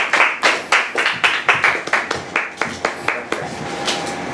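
A woman claps her hands in a quick rhythm.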